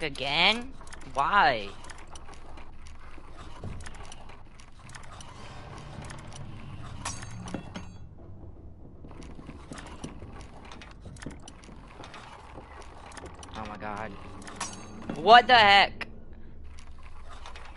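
A metal lock pick scrapes and clicks inside a lock.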